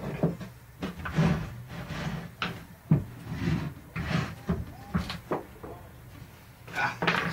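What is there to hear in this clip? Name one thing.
Sharp knocks and thumps sound close by.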